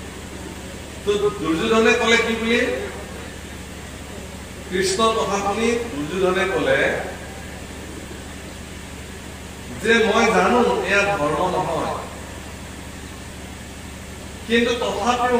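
A young man chants in phrases through a microphone, with pauses between them.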